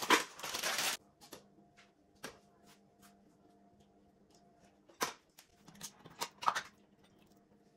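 Pieces of fruit drop into a plastic jug with soft knocks.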